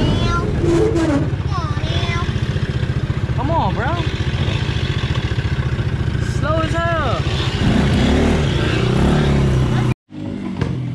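An engine idles with a low rumble.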